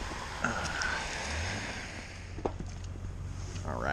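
A fish splashes into shallow water.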